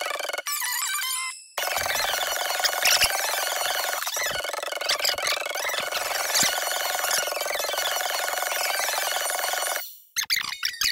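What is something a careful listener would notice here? Upbeat slot machine music plays with bright chiming jingles.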